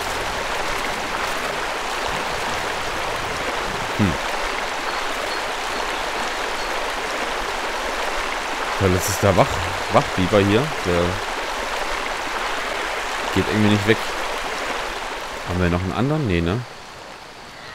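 Water swishes and splashes steadily as an animal swims through it.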